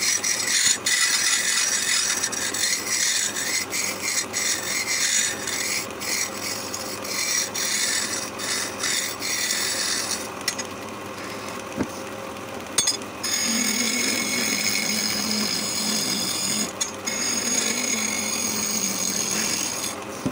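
A wood lathe spins steadily with a whirring hum.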